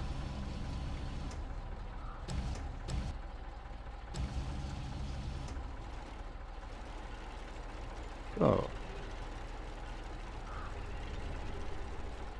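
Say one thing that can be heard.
A hydraulic crane whines as it moves a container.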